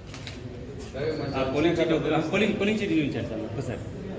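Men talk in an echoing corridor close by.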